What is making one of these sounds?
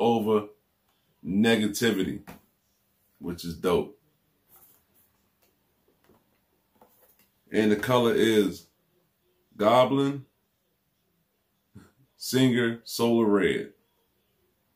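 A man speaks calmly and close to the microphone, in short bursts with pauses.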